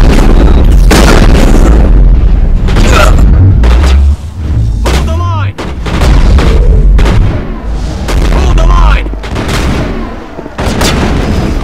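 Gunfire bursts sharply again and again.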